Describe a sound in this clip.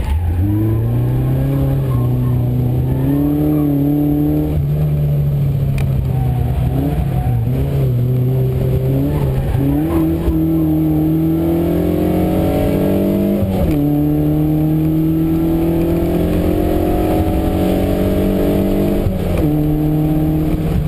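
A car engine revs hard, its pitch climbing and dropping with each gear change.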